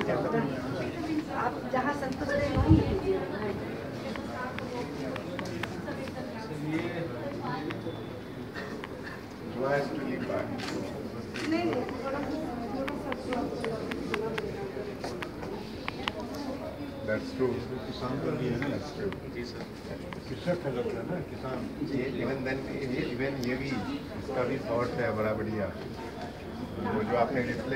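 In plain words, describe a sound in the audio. Several men and women murmur and chat quietly nearby.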